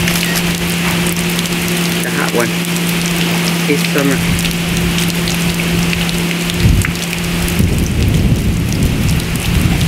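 Water pours and splashes onto a hard floor.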